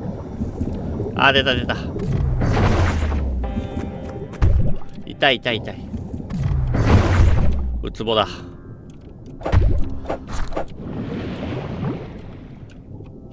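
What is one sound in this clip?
Whooshing bursts and chimes sound as a diver catches sea creatures.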